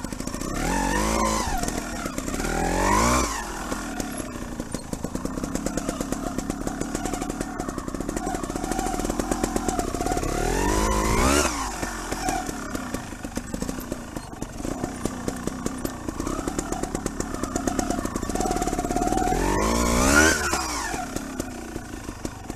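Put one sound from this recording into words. A trials motorcycle engine revs up and down at low speed.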